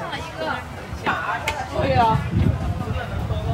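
A young woman talks briefly in passing nearby.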